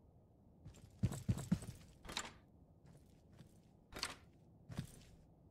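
A sliding door rolls open with a knock.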